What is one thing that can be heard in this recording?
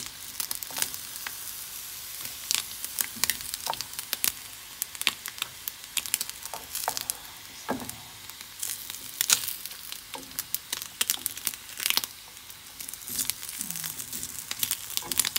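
Sausages and bacon sizzle and crackle in a hot pan.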